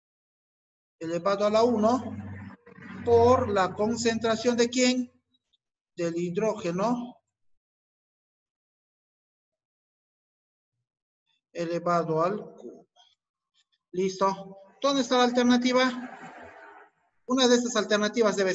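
A middle-aged man speaks calmly into a microphone, explaining with pauses.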